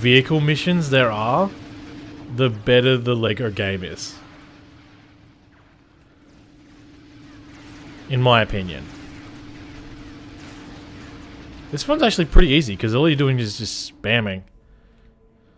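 Laser blasters fire in quick bursts.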